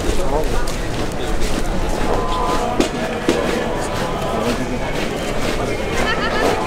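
A large outdoor crowd murmurs and chatters close by.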